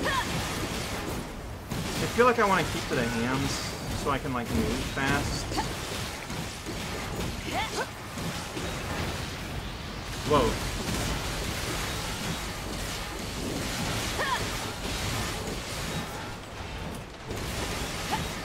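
Metal blades clang against a giant machine's armour.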